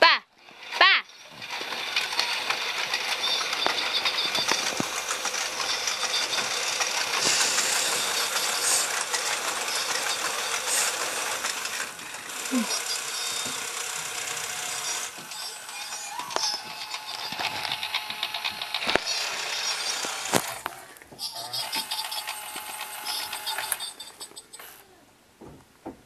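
A motorized animated Halloween prop whirs as it moves up and down.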